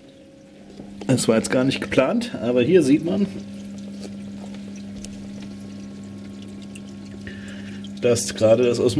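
A pump hums steadily nearby.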